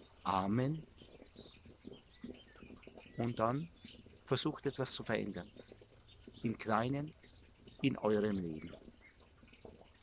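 A middle-aged man speaks calmly close by, outdoors.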